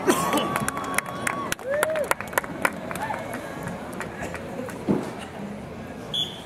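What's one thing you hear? A crowd cheers and whistles outdoors, then quiets down.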